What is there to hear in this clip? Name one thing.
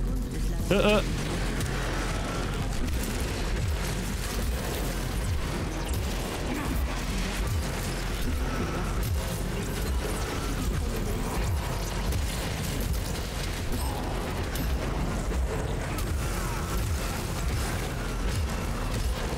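A man talks into a microphone close by with animation.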